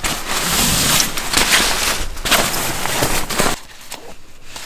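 Bedding rustles loudly as it is bundled and moved close by.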